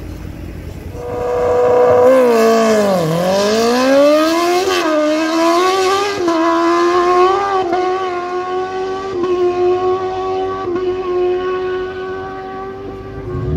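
A motorcycle engine roars as the bike accelerates hard away, its pitch climbing through gear changes and slowly fading into the distance.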